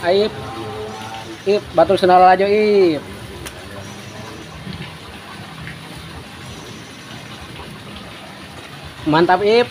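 Water trickles steadily into a pond.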